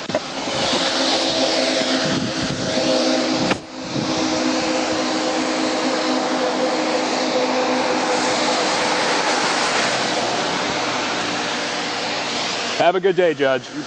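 Cars hiss past on a wet road.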